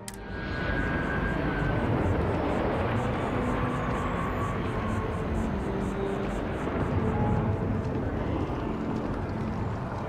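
Footsteps tap steadily on hard paving.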